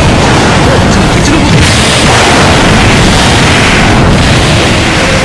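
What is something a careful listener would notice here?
Rapid punches and blows land in a fast video game fight.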